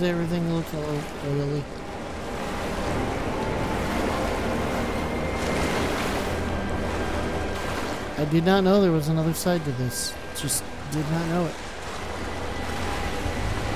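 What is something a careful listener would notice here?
Water sloshes and splashes as someone wades through it.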